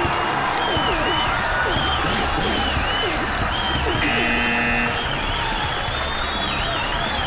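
Electronic game sound effects chirp and bleep rapidly.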